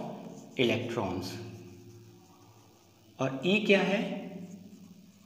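A man speaks in a loud, explaining voice in an echoing room.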